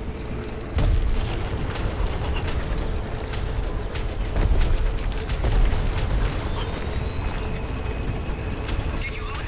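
A hover bike engine roars loudly at speed.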